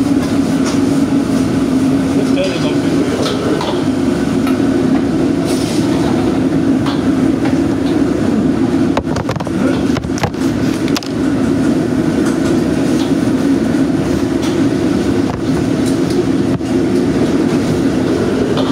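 A metal wok clatters and scrapes on a stove.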